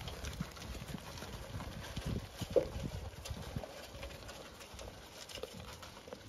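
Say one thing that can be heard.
Sheep nose and rattle against a metal trough.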